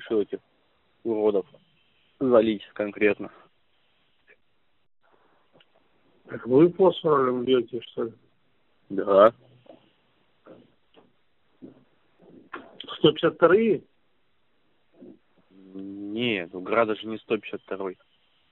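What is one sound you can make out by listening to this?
A second man answers over a phone line.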